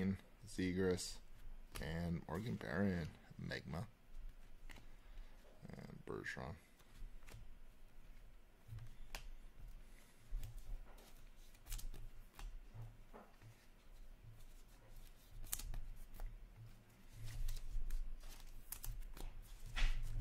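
Plastic-sleeved cards rustle and click as hands handle them.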